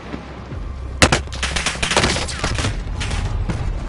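Rapid gunshots crack close by.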